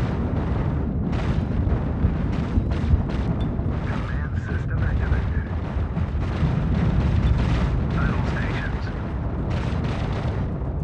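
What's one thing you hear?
Cannons fire in rapid bursts.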